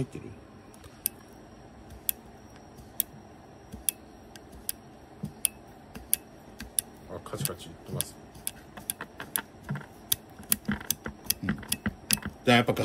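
Small metal parts click and tick as a shock absorber's adjuster is turned by hand.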